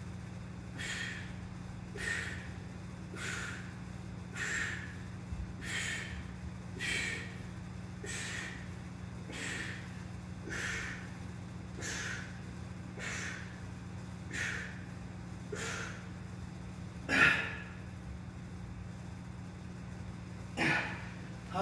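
A man breathes out sharply in a steady rhythm, close by.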